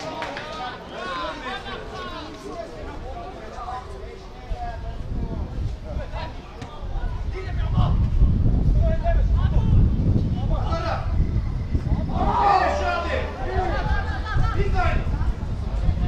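Footballers shout to each other across an open outdoor pitch.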